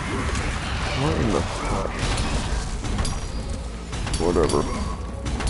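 A huge beast growls and roars.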